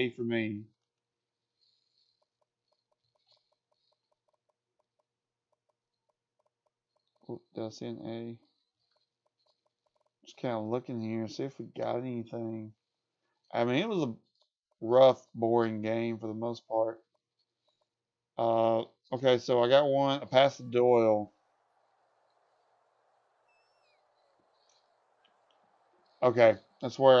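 A man talks calmly and casually into a close microphone, in bursts with pauses.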